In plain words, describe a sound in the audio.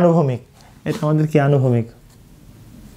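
A man speaks clearly into a close microphone.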